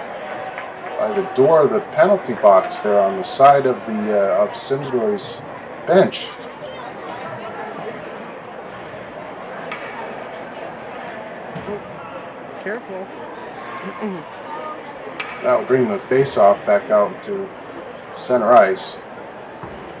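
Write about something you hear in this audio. Players and spectators shout and cheer in an echoing rink.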